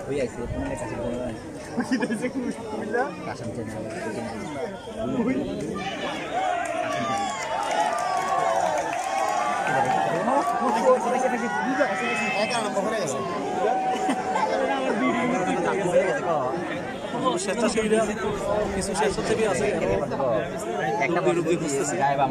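A large crowd of men and women talks and calls out all around, close by, outdoors.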